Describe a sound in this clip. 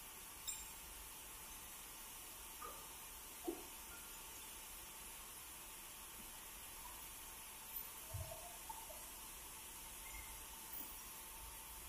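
A sawmill blade whines steadily as it cuts through timber.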